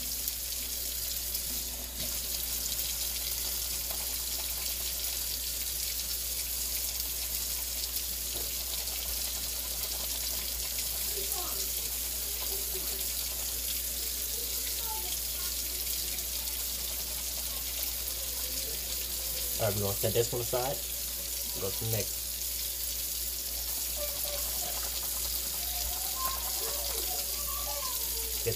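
Tap water runs steadily into a sink.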